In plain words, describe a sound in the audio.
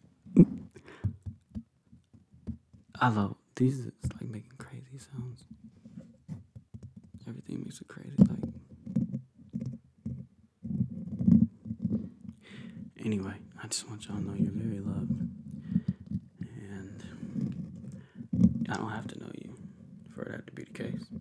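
A young man whispers softly and closely into a microphone.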